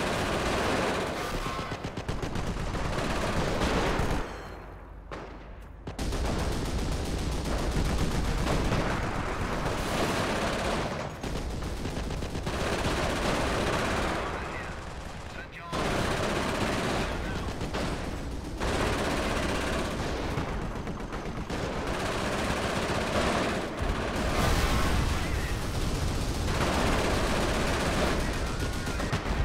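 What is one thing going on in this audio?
A tank engine rumbles.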